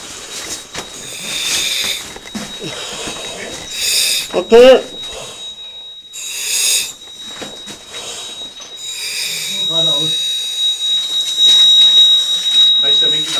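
A diver breathes through a regulator in slow, hissing breaths.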